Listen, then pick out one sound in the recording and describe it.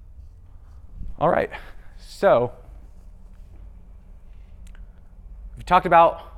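A young man speaks in short bursts.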